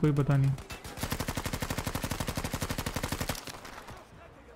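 A machine gun fires a rapid burst of shots.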